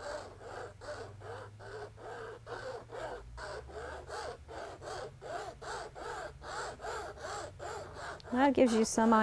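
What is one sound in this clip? A brush scrubs rhythmically on a painting surface.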